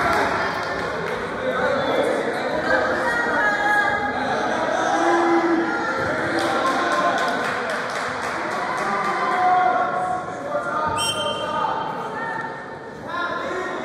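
Bodies thud on a wrestling mat.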